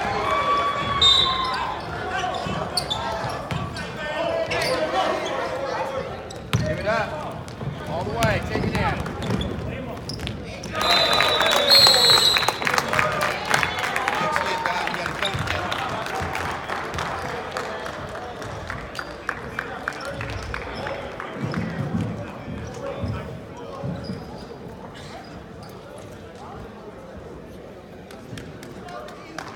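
A crowd chatters and cheers in a large echoing arena.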